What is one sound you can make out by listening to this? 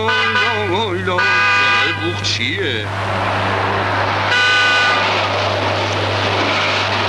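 A car engine runs as a car drives along.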